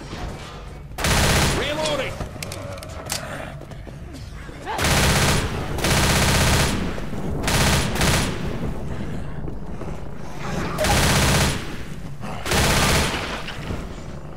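Rapid gunfire rings out in loud bursts.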